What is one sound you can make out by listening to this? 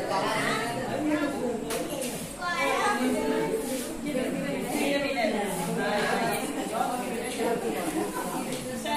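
Several women and children chatter together nearby in a lively room.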